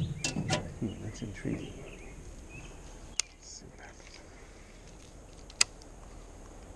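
A fishing reel clicks and whirs.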